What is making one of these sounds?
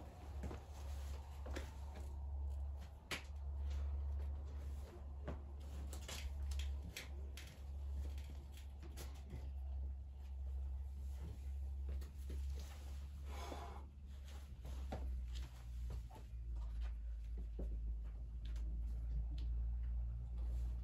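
A climber's shoes and hands scuff and tap against rock.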